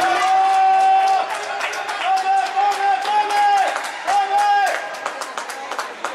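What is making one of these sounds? A crowd claps in rapid bursts.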